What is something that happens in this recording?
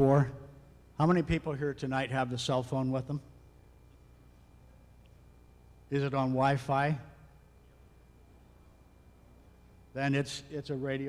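An elderly man speaks into a handheld microphone, heard through loudspeakers.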